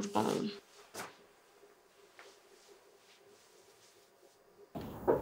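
A young woman speaks tearfully, close by.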